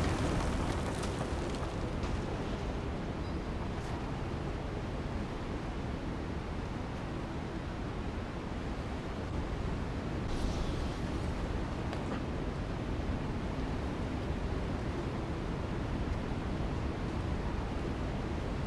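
Water pours and roars steadily in an echoing space.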